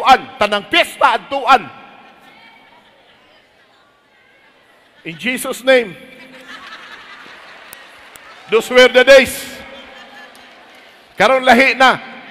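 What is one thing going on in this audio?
A large crowd cheers and murmurs in the hall.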